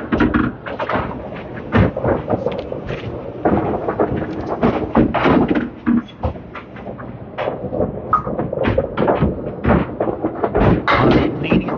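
A bowling ball rumbles down a wooden lane.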